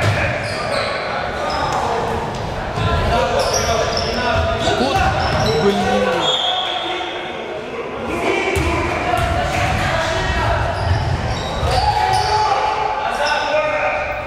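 Sneakers squeak sharply on a wooden gym floor.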